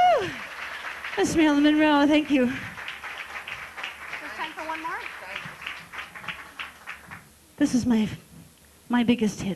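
A woman sings into a microphone through loudspeakers, holding long wavering notes.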